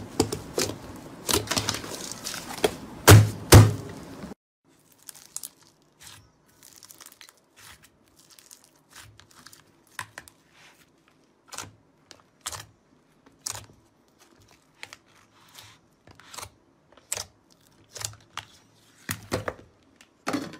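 Soft slime squelches and crackles as fingers press and squeeze it.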